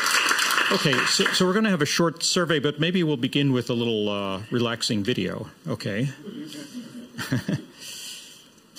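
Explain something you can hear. An elderly man speaks calmly through a microphone in a large room.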